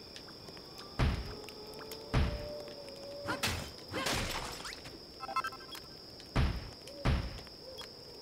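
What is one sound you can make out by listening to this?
Heavy blocks land with dull thuds.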